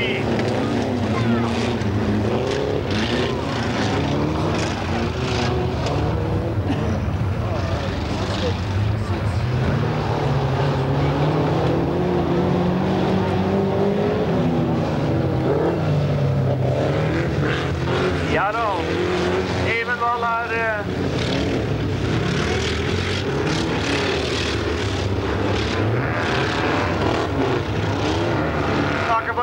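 Racing car engines roar and rev loudly outdoors.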